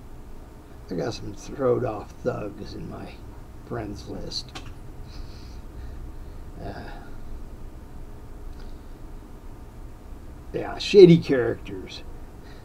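An elderly man talks calmly and close by, with pauses.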